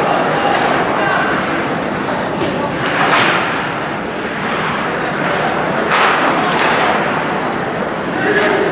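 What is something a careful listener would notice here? Ice skates scrape and carve across the ice in a large echoing arena.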